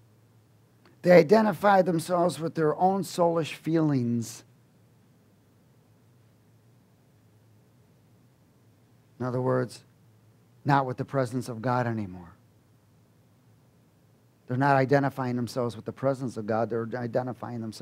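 A man speaks with animation into a headset microphone, with pauses.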